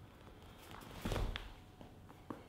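Two men's hands slap together with a sudden thump.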